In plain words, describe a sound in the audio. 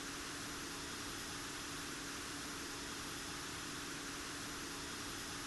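Jet engines roar steadily overhead.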